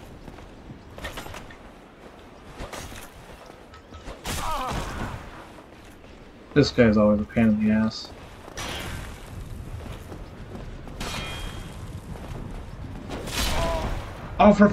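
Metal swords clash and clang sharply.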